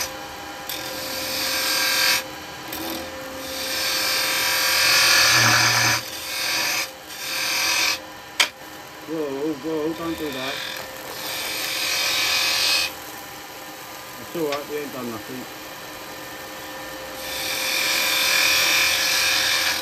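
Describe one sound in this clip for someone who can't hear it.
A gouge hisses and scrapes against spinning wood in bursts.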